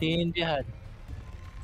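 A young man speaks into a microphone with animation.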